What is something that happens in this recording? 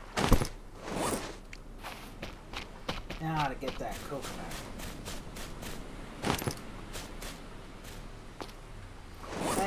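Footsteps crunch on sand and grass.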